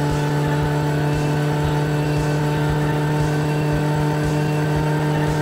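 A car engine hums while the car cruises along a road.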